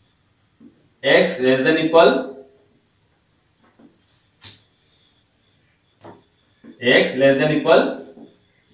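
A man speaks calmly and clearly, as if explaining, close by.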